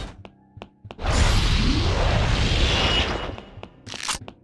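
A loud explosion roars and slowly dies away.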